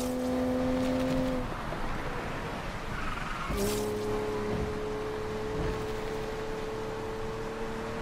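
A racing car engine drones at high speed, dropping away briefly and then roaring back up.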